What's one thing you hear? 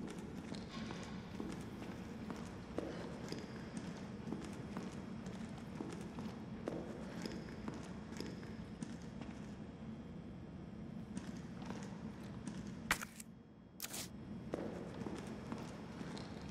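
Footsteps tap on a hard floor in a quiet, echoing space.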